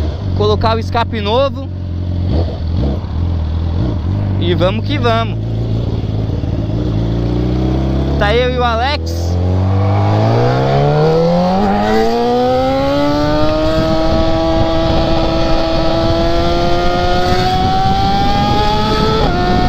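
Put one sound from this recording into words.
A motorcycle engine runs low and then rises steadily in pitch as the bike speeds up.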